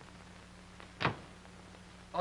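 A door swings shut with a thud.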